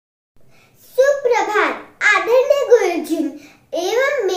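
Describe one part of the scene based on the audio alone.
A young girl speaks with animation, close to a microphone.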